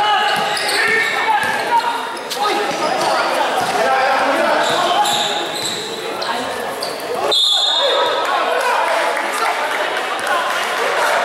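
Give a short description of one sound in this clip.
A crowd of spectators chatters and shouts around the court.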